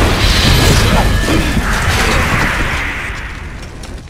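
A flamethrower roars in a burst of fire.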